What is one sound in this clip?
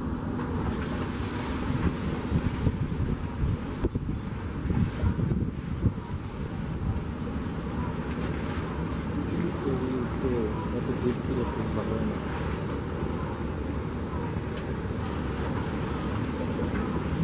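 A ferry's engine rumbles steadily close by.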